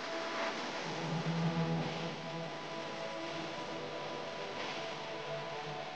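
Vinyl film crinkles and rustles as it is peeled away by hand.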